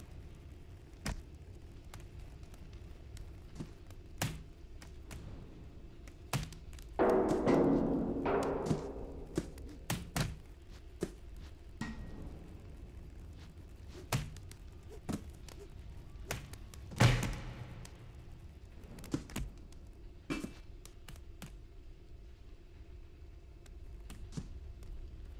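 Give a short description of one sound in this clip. Boxes and barrels thud and clatter.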